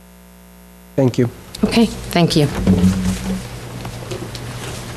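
A woman speaks into a microphone over a loudspeaker in an echoing room.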